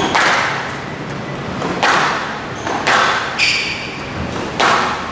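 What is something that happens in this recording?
A squash ball is struck hard and smacks off the walls of a glass court.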